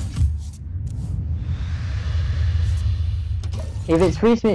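A magical whooshing effect sounds as a card is played.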